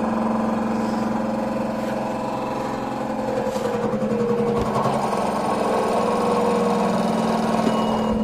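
A washing machine hums and whirs steadily.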